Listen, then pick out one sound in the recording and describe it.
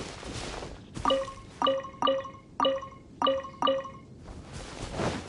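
Short bright chimes ring out one after another.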